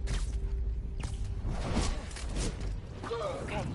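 A body whooshes fast through the air.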